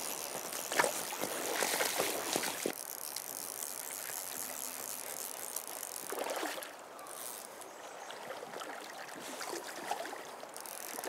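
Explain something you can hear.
Boots splash and slosh through shallow water.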